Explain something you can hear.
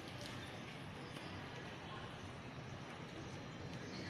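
A woman talks quietly close by in an echoing hall.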